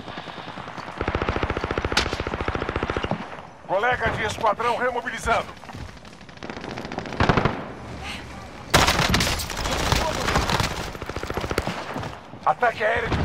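Rapid automatic gunfire rattles close by.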